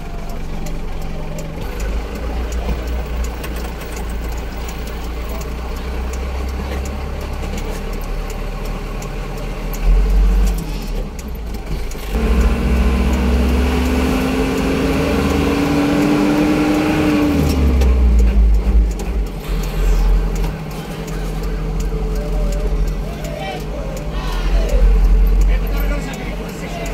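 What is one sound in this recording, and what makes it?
A car engine hums and rumbles, heard from inside the car.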